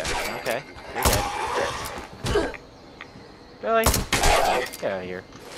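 Gunshots bang out in short bursts.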